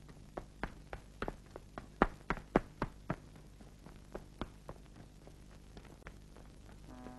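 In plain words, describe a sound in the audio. Footsteps tap on stone steps.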